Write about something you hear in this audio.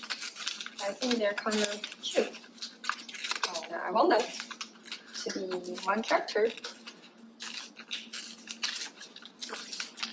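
Paper tears slowly.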